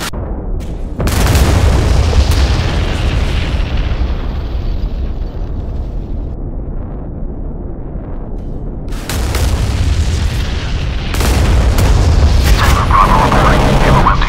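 Jet engines roar steadily and loudly.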